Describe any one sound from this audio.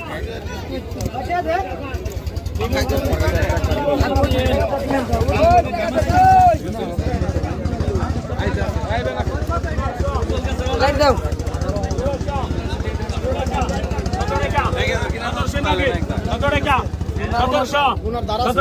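A crowd of men chatters all around outdoors.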